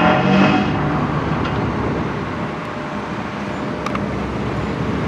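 Excavator engines rumble steadily in the distance.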